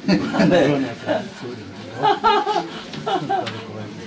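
An elderly man laughs heartily nearby.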